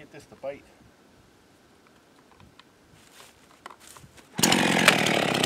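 A person yanks a chainsaw's starter cord.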